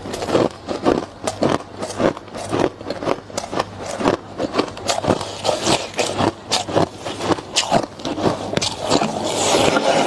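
A young woman talks with animation, close to a clip-on microphone.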